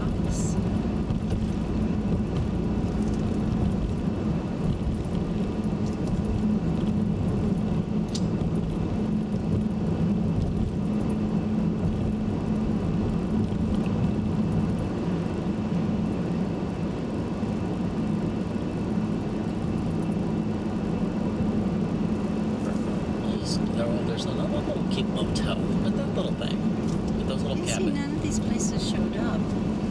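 A car's engine hums steadily from inside as it drives along a road.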